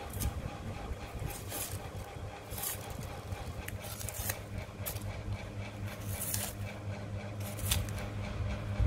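Dry onion skin rustles as it is peeled away.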